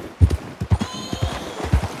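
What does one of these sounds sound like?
A horse splashes through shallow water.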